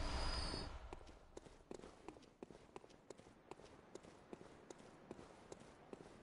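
Footsteps tap quickly on wet cobblestones.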